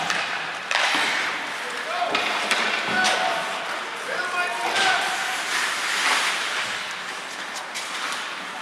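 Skate blades scrape and hiss across the ice.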